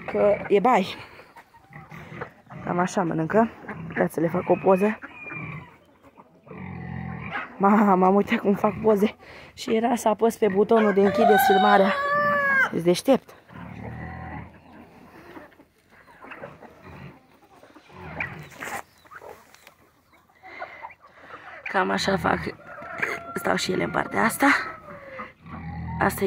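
A flock of hens clucks and squawks close by.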